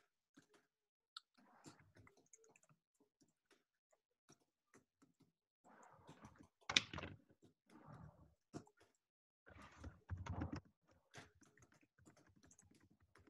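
Keys on a keyboard click as someone types.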